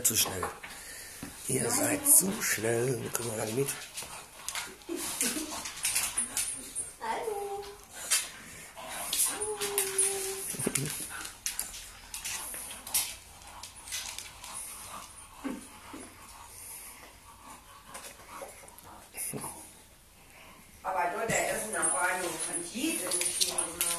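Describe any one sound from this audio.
A dog's claws patter and scrabble on a wooden floor.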